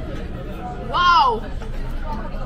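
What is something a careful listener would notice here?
A young woman exclaims in a high voice.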